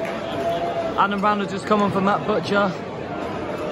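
Nearby spectators chant loudly.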